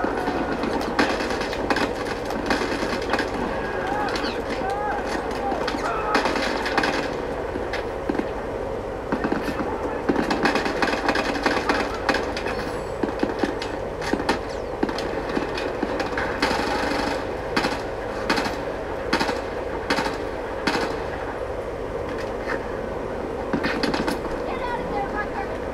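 Rifle fire cracks in rapid bursts through a loudspeaker.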